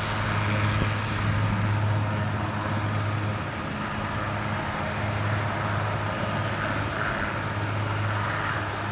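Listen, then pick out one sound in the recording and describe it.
A helicopter's engine whines steadily nearby.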